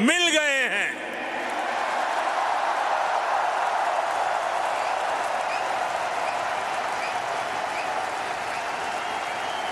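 A huge crowd cheers and roars steadily.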